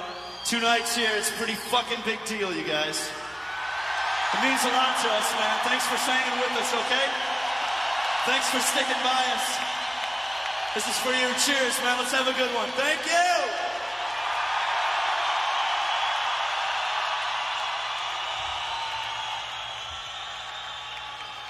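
A large crowd cheers and roars.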